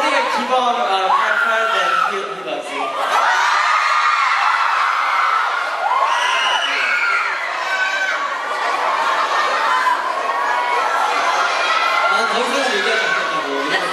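A crowd of young women screams and cheers.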